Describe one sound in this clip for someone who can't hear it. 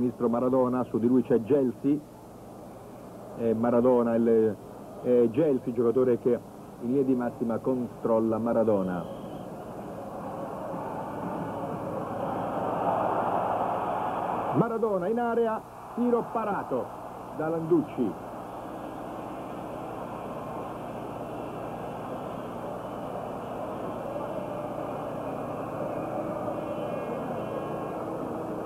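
A large stadium crowd cheers and roars, swelling and then settling to a steady din.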